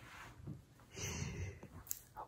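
A middle-aged woman softly shushes.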